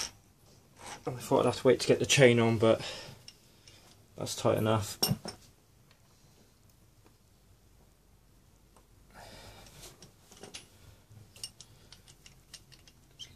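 A ratchet wrench clicks against metal.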